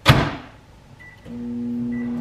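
A microwave oven beeps.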